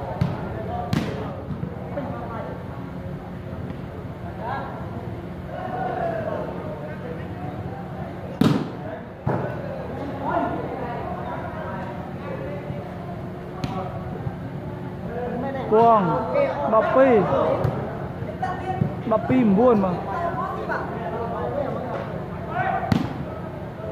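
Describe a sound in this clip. A volleyball is struck with bare hands.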